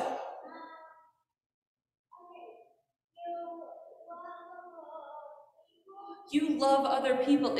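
A woman speaks calmly into a microphone, heard through a loudspeaker in an echoing hall.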